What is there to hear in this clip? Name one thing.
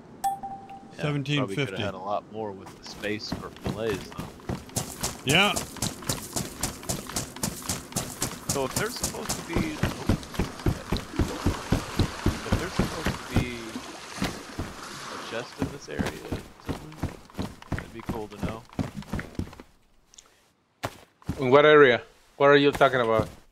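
Young men talk with animation over headset microphones.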